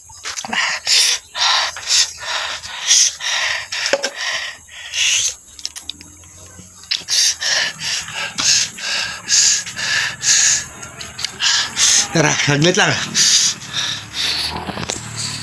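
A man sings loudly and emotionally close to a phone microphone.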